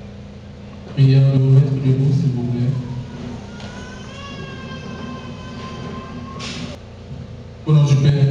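A man speaks solemnly through a microphone, echoing over loudspeakers.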